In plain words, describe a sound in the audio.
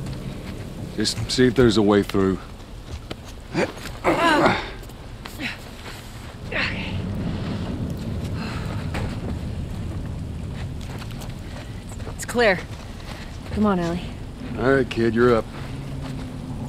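A man speaks calmly and low nearby.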